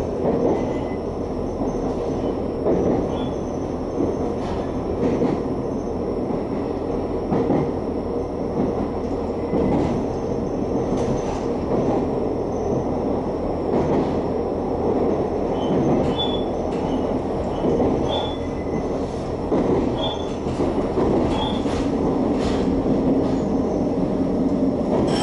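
A train rumbles and rattles steadily along the tracks, heard from inside a carriage.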